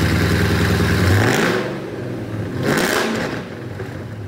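A car engine revs sharply and falls back.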